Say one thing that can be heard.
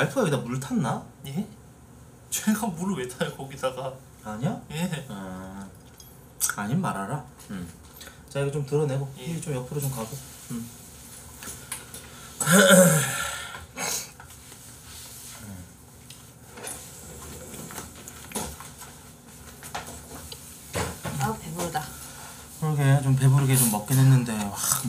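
A young woman speaks briefly close to a microphone.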